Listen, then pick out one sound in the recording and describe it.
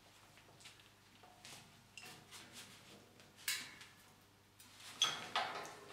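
A hand rivet tool clicks and snaps as its handles are squeezed.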